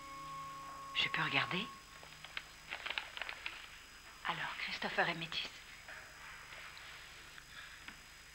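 An older woman speaks earnestly.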